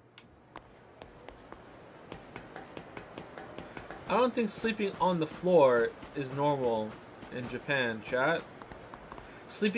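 Footsteps tap on hard ground outdoors.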